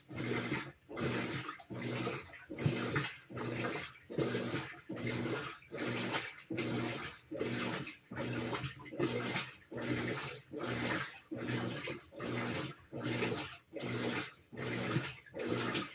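A top-load washing machine churns water in rhythmic bursts in its wash cycle.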